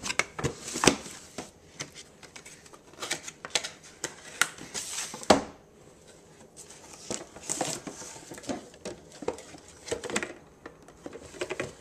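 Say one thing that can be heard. Plastic containers clack and knock against each other.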